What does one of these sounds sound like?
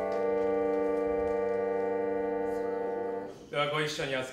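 An organ plays a sustained chord that stops abruptly.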